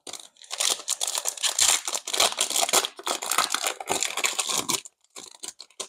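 A foil wrapper crinkles and tears close by.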